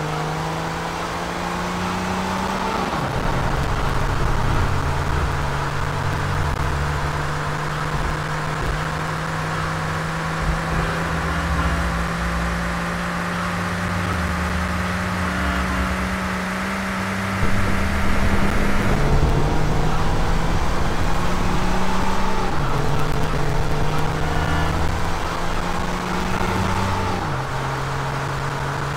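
A sports car engine roars steadily as the car speeds along a road.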